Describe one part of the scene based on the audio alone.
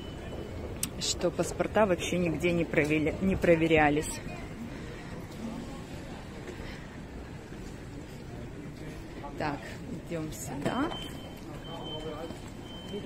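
An elderly woman talks close by.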